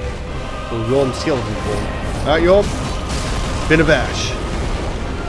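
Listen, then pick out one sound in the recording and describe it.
A giant's weapon whooshes and crashes loudly.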